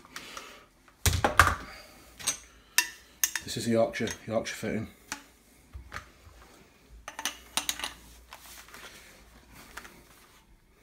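Metal parts clink and knock as a copper pipe is handled.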